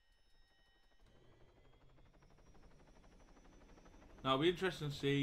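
Helicopter rotors thump and whir.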